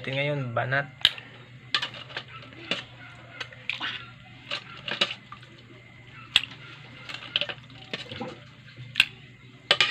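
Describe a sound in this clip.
Broth is poured and splashes onto food in a metal tray.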